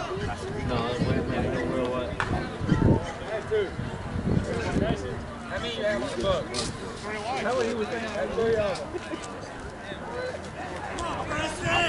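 Several men talk and call out across an open field outdoors.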